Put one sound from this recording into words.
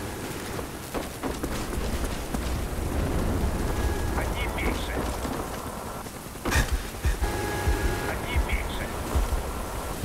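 Gunshots crack in quick bursts at close range.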